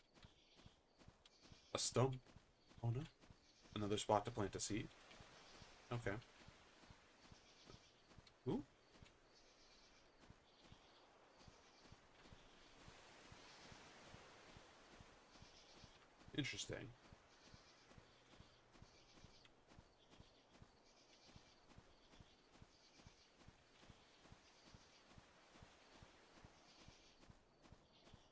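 Soft footsteps patter steadily on grass.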